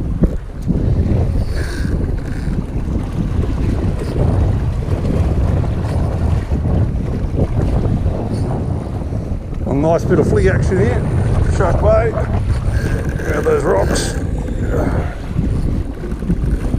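A fishing reel clicks and whirs as it is cranked.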